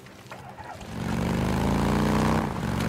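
A motorcycle engine starts and revs up.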